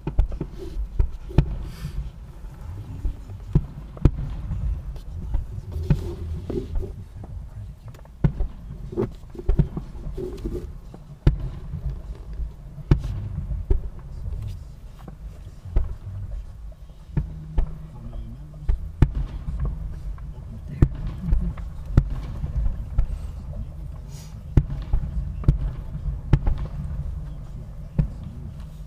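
Fireworks boom and crackle in the distance.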